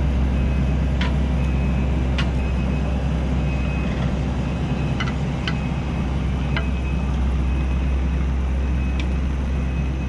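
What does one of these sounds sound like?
Metal tracks of a loader clank and squeak as the loader drives.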